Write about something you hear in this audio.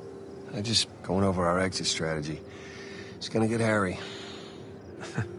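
A man answers calmly and quietly.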